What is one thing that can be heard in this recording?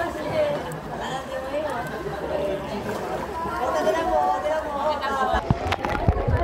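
A group of men and women chatter and call out across open water.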